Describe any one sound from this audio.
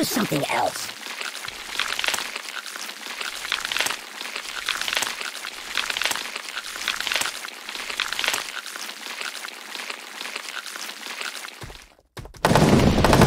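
Stone blocks crash and crumble repeatedly.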